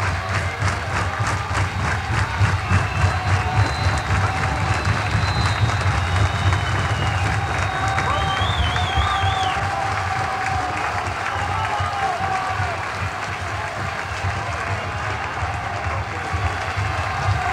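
An electric guitar plays a rock tune through an amplifier.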